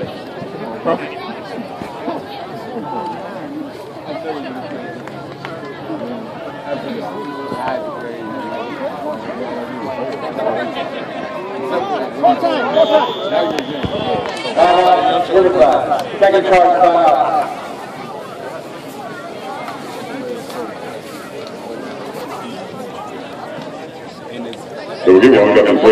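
A crowd of spectators chatters and calls out in outdoor stadium stands.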